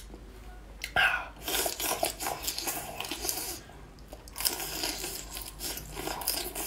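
A young man cracks a shell with his hands, with loud crunching.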